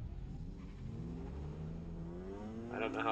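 A car engine revs up, rising in pitch.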